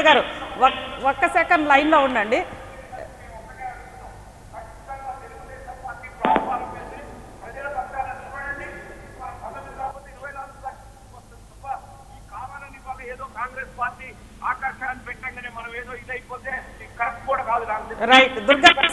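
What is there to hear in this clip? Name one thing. A man speaks with animation over a microphone.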